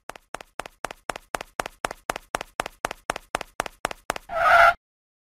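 Quick cartoon footsteps patter in a steady rhythm.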